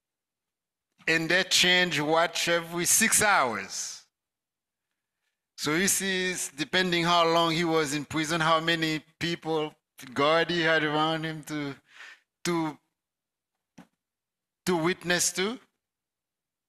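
A man preaches with animation into a microphone, heard through loudspeakers in a room.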